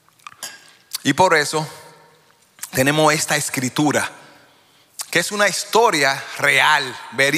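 An older man speaks with animation into a microphone.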